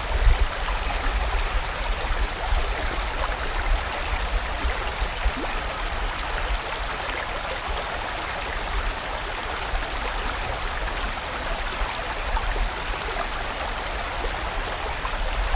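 A stream rushes and splashes steadily over rocks.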